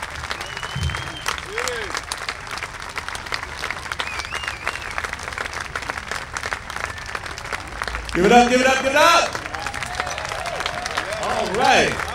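A crowd claps steadily outdoors.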